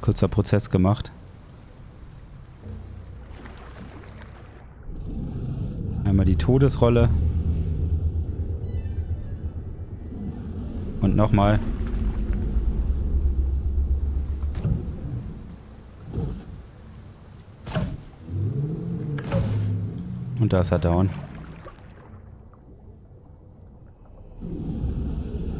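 Water sloshes and churns as a large animal swims.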